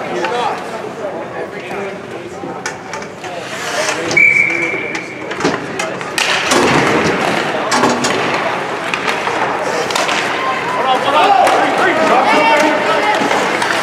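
Ice skates scrape and hiss across ice in an echoing rink.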